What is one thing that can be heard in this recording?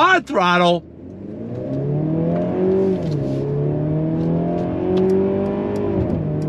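A car engine revs and rises in pitch as the car speeds up.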